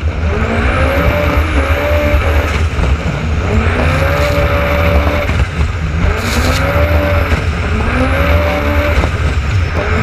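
An engine roars close by, its pitch rising and falling over and over as it revs.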